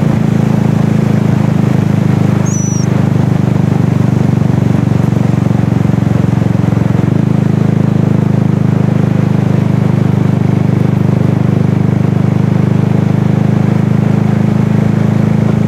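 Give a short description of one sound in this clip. An engine drones steadily at a low pitch.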